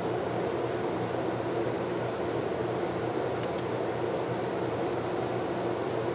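Sticker paper crinkles and peels under fingers.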